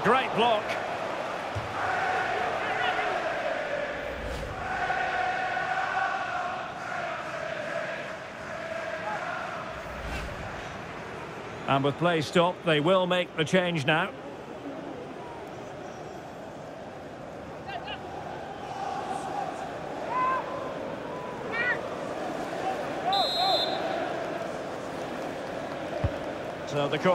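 A large stadium crowd chants and sings loudly.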